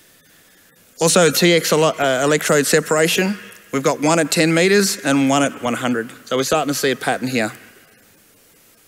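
A man speaks calmly through a microphone and loudspeakers in a large hall.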